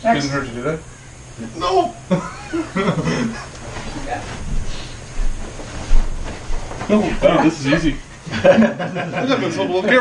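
A man speaks loudly and firmly.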